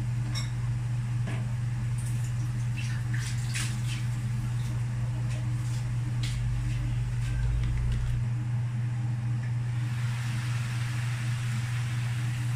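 Food sizzles softly in a covered pan.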